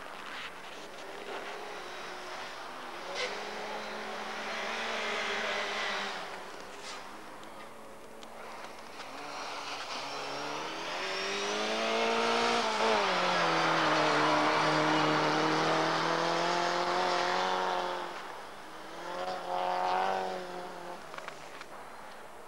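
A rally car engine roars and revs hard, rising and falling as it passes.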